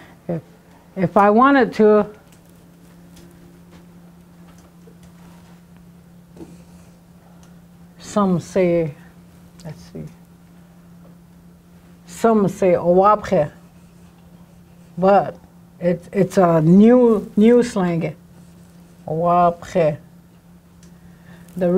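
An elderly woman speaks slowly and clearly, in short phrases with pauses, close by.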